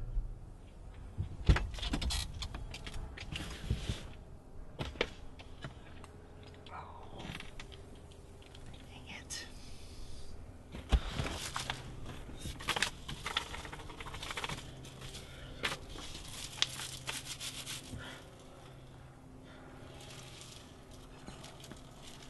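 Objects clatter and rustle as a man rummages about.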